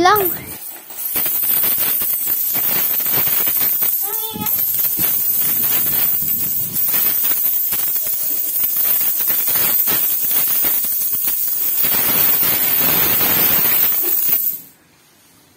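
Coins pour out of a jar onto a pile, clinking and rattling.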